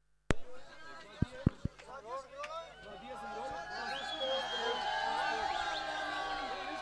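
A large crowd of boys and men cheers and shouts excitedly.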